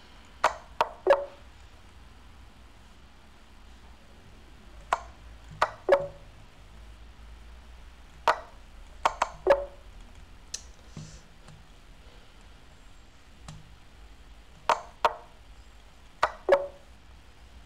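Short sharp clicks of chess moves sound in quick bursts.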